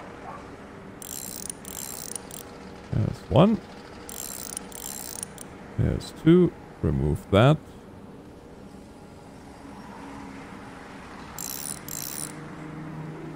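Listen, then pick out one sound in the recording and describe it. A ratchet wrench clicks rapidly as it loosens a bolt.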